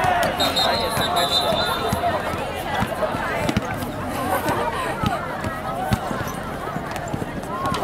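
Shoes squeak on the court.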